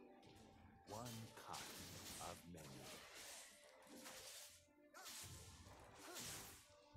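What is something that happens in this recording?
Sword strikes and magic blasts clash in a video game fight.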